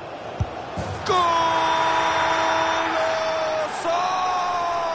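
A large stadium crowd erupts in loud cheering.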